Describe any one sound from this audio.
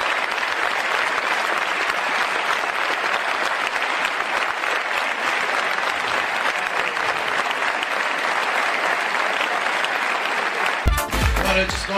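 A large audience applauds and cheers loudly in a big hall.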